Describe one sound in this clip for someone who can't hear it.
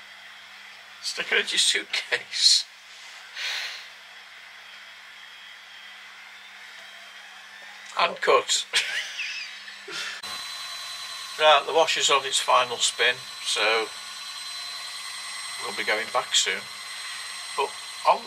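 An older man talks and answers close by.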